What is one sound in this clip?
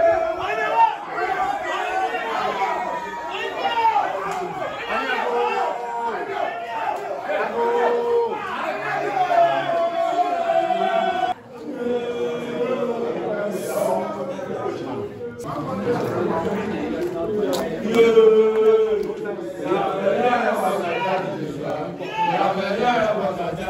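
A group of men sing and chant loudly close by.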